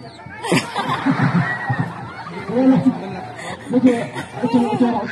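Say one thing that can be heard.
Several people nearby shout and cheer with excitement.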